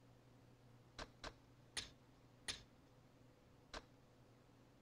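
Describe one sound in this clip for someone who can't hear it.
Short menu clicks blip several times.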